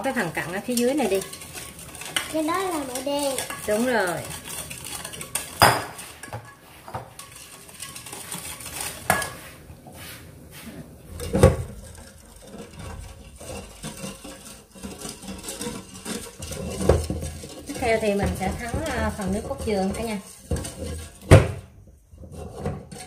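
A metal whisk clinks and scrapes against a metal bowl.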